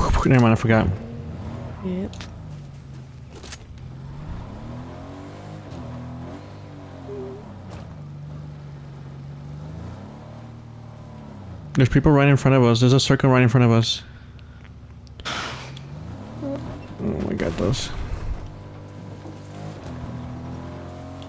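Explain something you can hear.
A car engine hums, rising and falling in pitch as it is driven.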